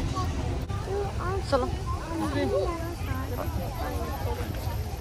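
A crowd of men and women chat outdoors nearby.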